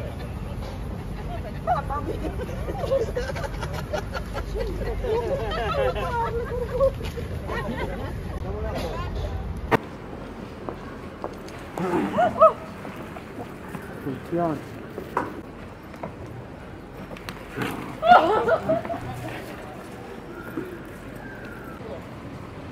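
Many people chatter outdoors in a busy crowd.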